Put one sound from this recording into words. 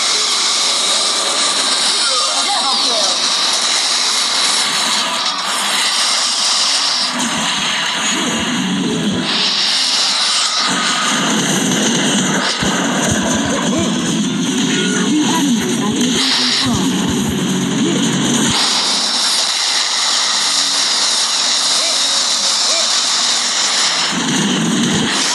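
Game laser guns fire in rapid bursts.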